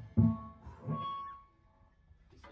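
A cymbal crashes and rings.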